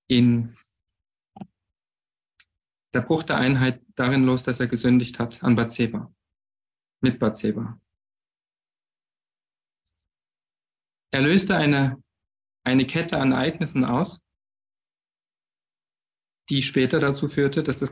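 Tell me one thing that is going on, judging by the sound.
A man speaks calmly in short phrases over an online call, with pauses between.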